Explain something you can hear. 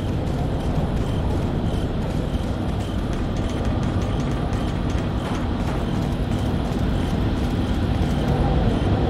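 Footsteps thud on wooden and metal stairs.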